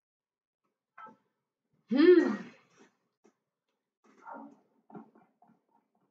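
A woman speaks briefly and with animation, close to a microphone.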